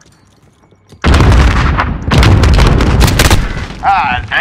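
Heavy gunfire and explosions roar close by.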